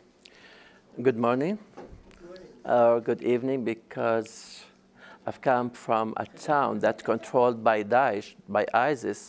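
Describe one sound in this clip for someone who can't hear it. A middle-aged man speaks warmly through a microphone.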